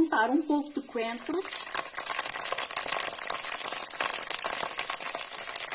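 Broth bubbles and sizzles steadily in a pot.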